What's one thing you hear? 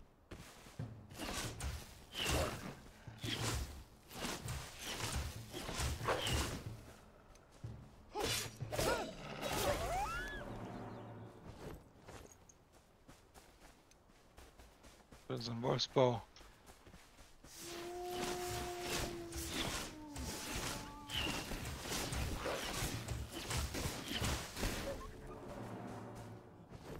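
Sword blows strike an enemy with sharp impacts.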